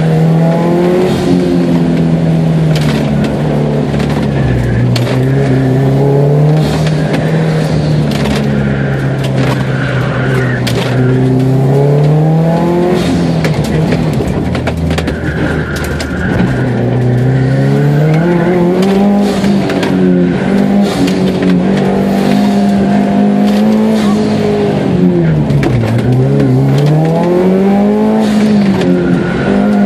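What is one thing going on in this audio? A car engine roars close by, revving up and down.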